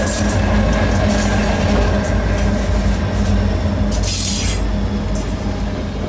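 Diesel locomotive engines rumble and throb up close.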